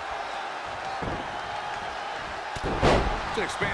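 A wrestler's body slams hard onto the ring mat.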